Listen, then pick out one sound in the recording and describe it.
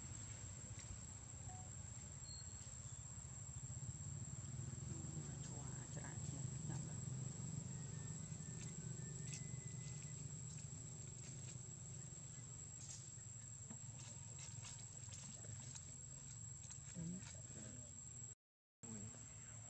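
Dry leaves rustle as monkeys shift about.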